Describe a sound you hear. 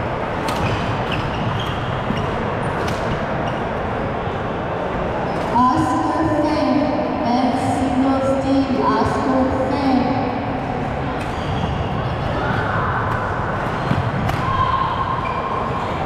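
Rackets smack a shuttlecock back and forth in a large echoing hall.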